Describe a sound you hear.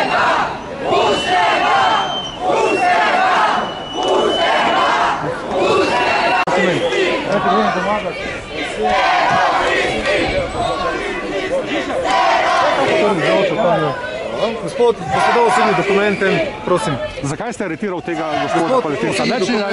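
Several men talk close by, outdoors, over each other with animation.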